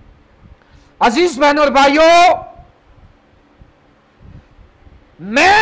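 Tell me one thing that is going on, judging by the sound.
A man sings loudly into a close microphone, with pauses between phrases.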